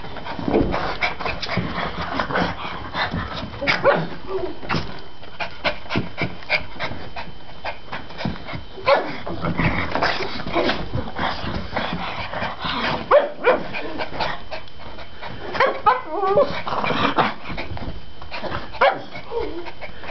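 Dog paws patter and scrabble on carpet.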